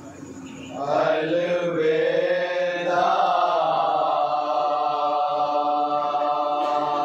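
A man chants a mournful lament loudly through a microphone.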